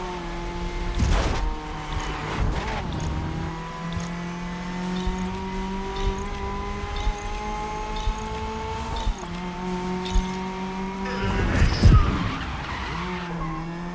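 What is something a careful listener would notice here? Car tyres screech and skid on a wet road.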